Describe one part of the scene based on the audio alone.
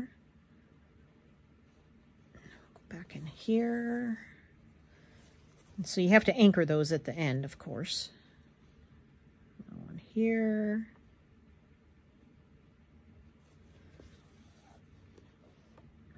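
Thread rasps softly as it is pulled through cloth.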